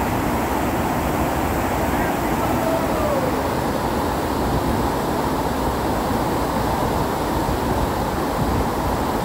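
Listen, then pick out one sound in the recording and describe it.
A fast river rushes loudly over rocks, close by.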